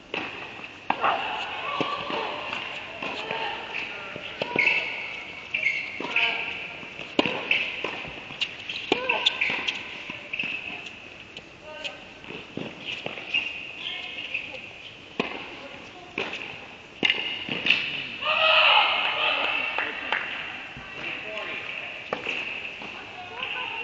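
Young women call out and cheer in an echoing hall.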